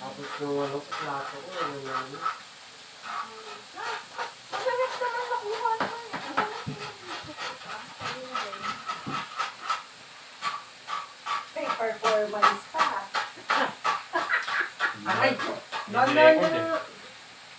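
Metal tongs clink against a pan.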